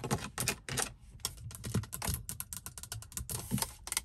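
A plastic lid clicks open.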